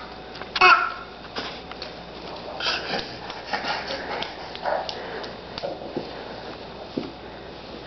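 A baby's hands pat softly on a wooden floor while crawling.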